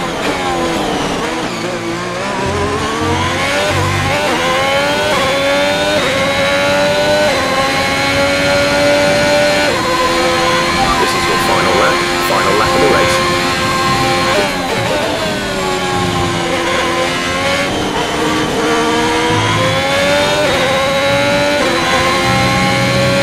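A racing car engine screams, rising in pitch through the gears and dropping as it slows for corners.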